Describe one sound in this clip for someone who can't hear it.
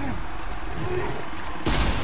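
Spell blasts and weapon clashes crackle in a fight.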